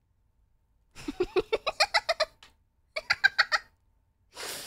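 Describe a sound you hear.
A young woman laughs in short bursts into a close microphone.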